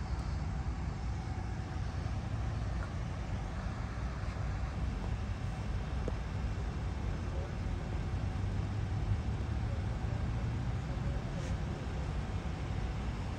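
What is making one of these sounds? Vehicle engines idle nearby in the open air.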